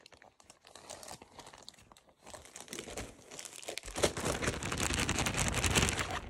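A dog sniffs and snuffles close by.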